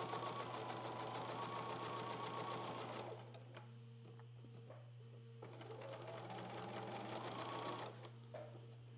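A sewing machine whirs steadily, stopping and starting again.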